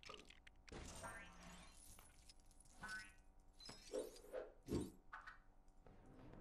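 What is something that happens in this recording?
Coins jingle and chime in quick bursts as they are collected.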